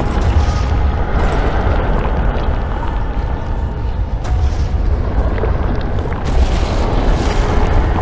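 A beam of energy hums with a steady, deep drone.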